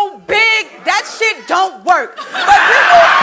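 A young woman raps loudly and forcefully.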